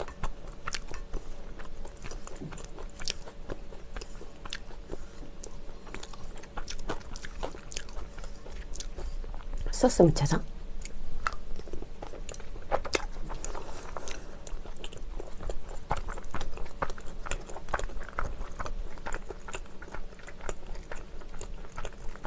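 Food sizzles on a hot pan.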